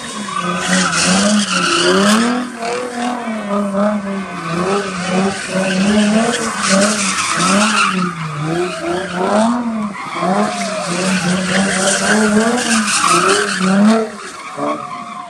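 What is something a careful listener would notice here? Tyres screech on pavement.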